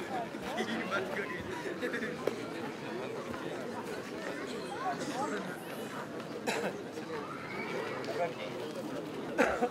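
A crowd of men chatters all around outdoors.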